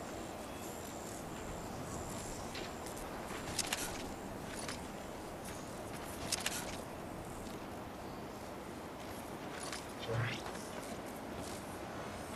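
Footsteps rustle through dense leaves.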